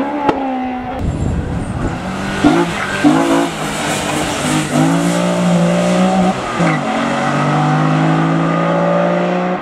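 A second car engine revs hard and crackles with loud pops.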